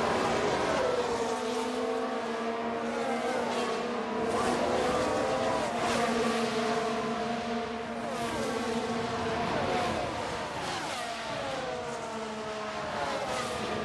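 Cars whoosh past one after another.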